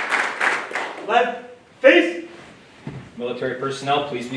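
A man speaks calmly through a microphone and loudspeaker.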